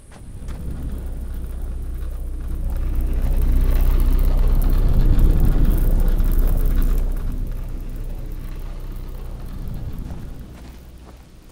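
An energy beam fires with a loud, deep crackling roar.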